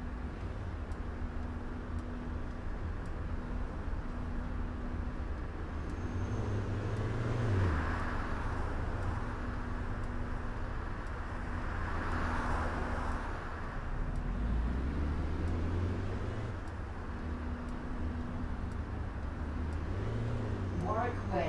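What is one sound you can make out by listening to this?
A bus engine hums steadily and rises and falls as the bus drives.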